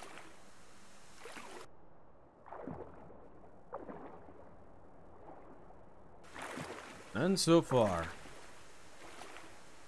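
Water laps gently at the surface.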